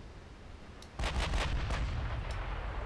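Naval guns fire in a rapid burst of loud booms.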